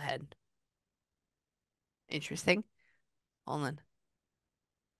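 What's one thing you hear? A woman speaks softly and close to a microphone, in short bursts.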